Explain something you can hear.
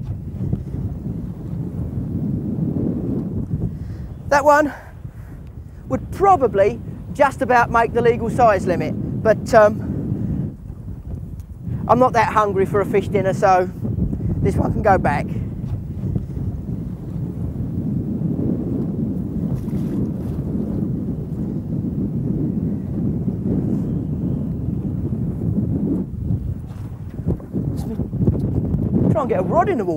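Wind blusters steadily over open water.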